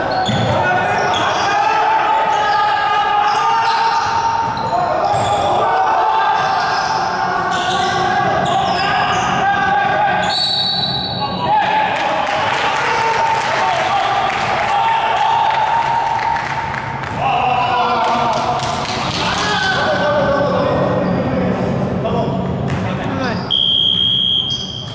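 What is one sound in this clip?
Young men shout and call out across an echoing gym.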